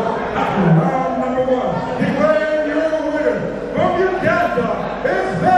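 A man announces loudly through a loudspeaker in an echoing hall.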